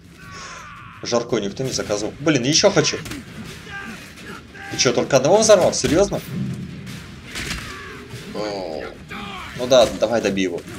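Men grunt and yell as they fight.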